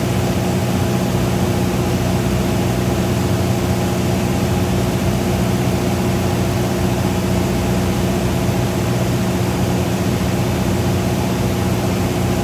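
Wind rushes steadily past the small aircraft.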